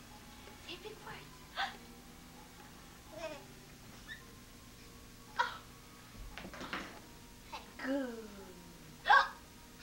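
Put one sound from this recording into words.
A baby coos and babbles nearby in short bursts.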